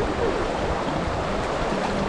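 A man splashes water with his hands.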